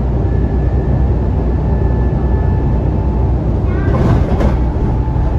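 A bus engine hums steadily, heard from inside.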